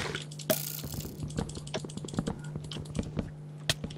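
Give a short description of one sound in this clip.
Blocks crunch and break as they are dug out in quick succession.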